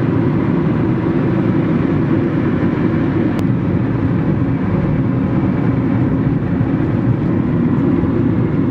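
A car drives at speed along a highway, its engine and tyres rumbling steadily from inside.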